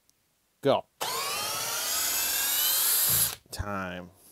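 A cordless drill whirs with a rising whine as it drives a screw into wood.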